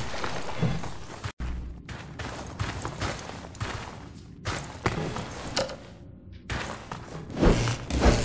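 Footsteps crunch on straw.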